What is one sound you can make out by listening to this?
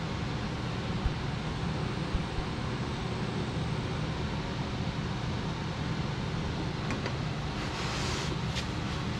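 A metal sheet rattles and wobbles as a man feeds it through a machine.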